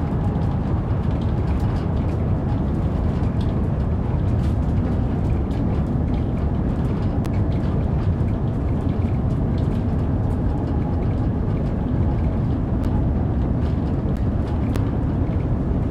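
A train rumbles steadily through a tunnel at speed.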